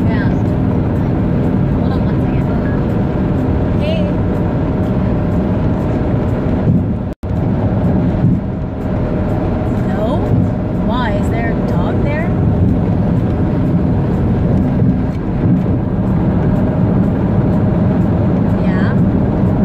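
A car engine rumbles low and steady inside a moving car.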